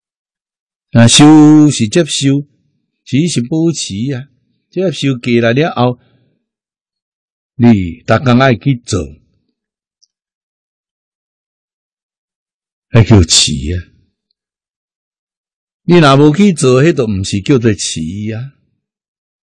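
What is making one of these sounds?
An elderly man speaks calmly and close to a microphone, with pauses.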